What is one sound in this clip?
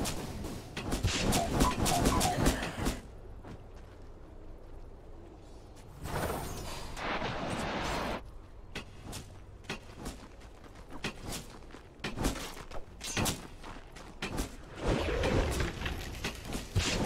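Magical blasts and sword strikes clash in a fast fight.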